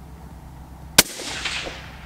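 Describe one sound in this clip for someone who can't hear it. A rifle fires a single loud shot outdoors.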